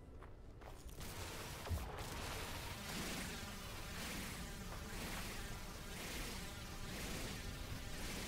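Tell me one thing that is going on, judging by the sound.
A laser tool hums and hisses steadily.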